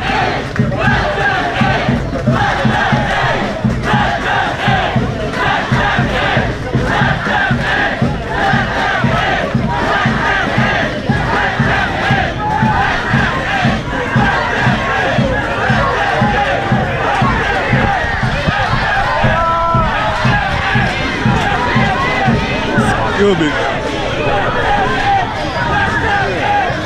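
A large crowd chants loudly and rhythmically outdoors.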